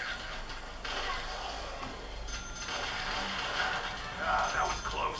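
A video game plays shooting sounds and effects through a small tablet speaker.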